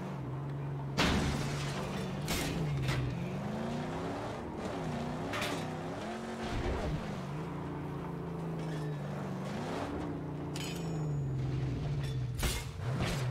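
A car crashes with loud metallic bangs.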